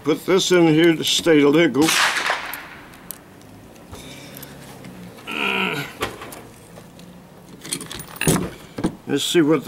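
Metal parts of a rifle click as it is handled.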